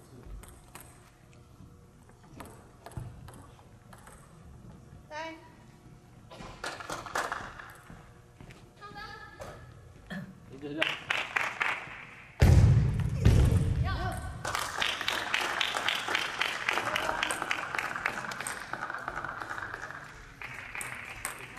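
A table tennis ball clicks back and forth on paddles and the table in a large echoing hall.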